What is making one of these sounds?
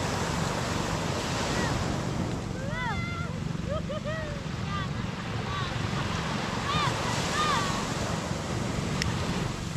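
Waves wash steadily onto a beach outdoors.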